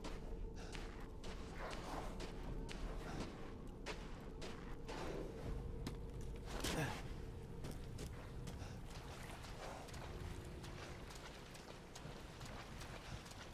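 Footsteps crunch steadily over snow and frozen ground.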